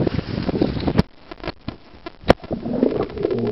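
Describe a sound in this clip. Bubbles gurgle, muffled underwater.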